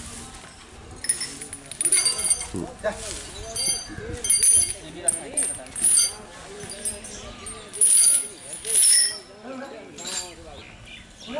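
Metal chains clink and rattle.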